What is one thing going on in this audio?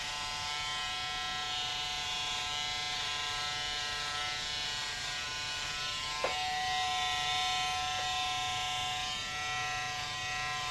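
Electric hair clippers buzz through short hair.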